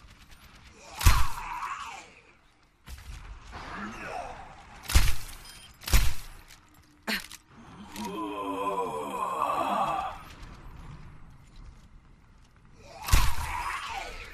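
A rifle fires loud single shots.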